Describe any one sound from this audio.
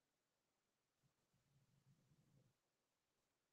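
A man hums a low tone softly.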